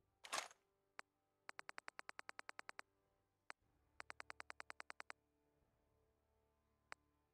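Short electronic menu clicks tick rapidly in quick runs.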